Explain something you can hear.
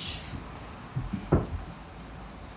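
A body thumps softly onto a wooden floor.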